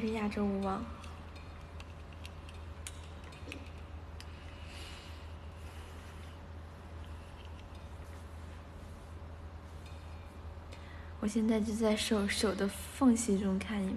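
A young woman talks brightly and playfully close to a phone microphone.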